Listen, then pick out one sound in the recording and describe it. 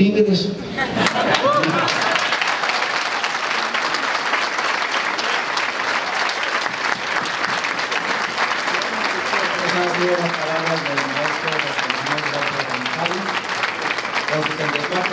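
A crowd applauds loudly and steadily.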